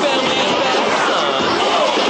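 Young girls cheer and shout with excitement.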